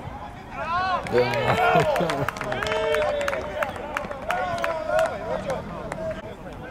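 A small crowd of men cheers loudly after a goal.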